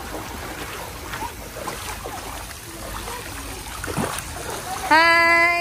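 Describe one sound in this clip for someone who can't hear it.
Water splashes as children swim.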